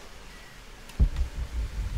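Footsteps thud on soft ground as a person runs.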